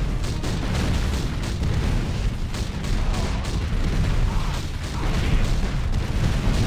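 Explosions boom and rumble in a game battle.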